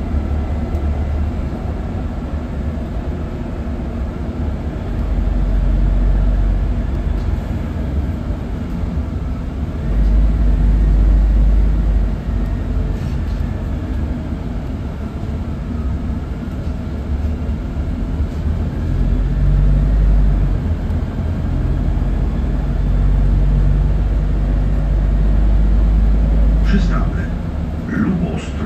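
A bus engine rumbles low and swells and eases as the bus drives along.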